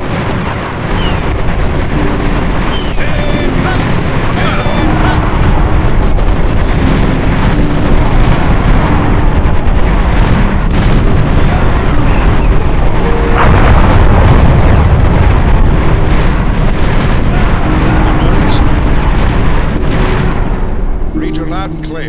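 Rifles crackle in a rapid, dense battle.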